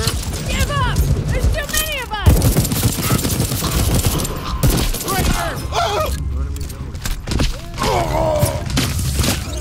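Gunshots fire rapidly in bursts.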